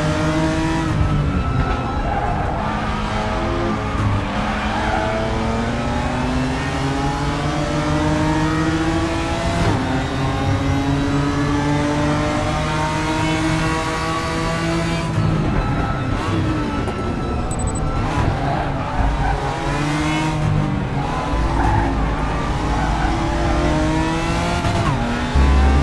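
A race car engine roars and revs up and down through the gears.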